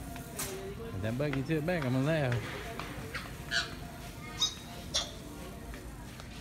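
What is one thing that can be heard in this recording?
A shopping cart rattles as it rolls.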